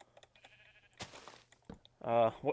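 A wooden block is set down with a dull thud.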